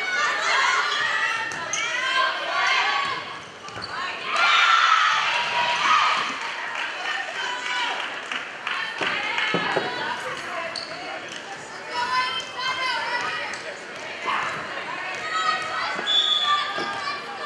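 Young women players call out and shout to each other.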